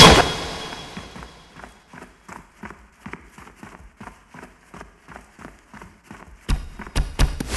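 Footsteps run quickly over sand and stone.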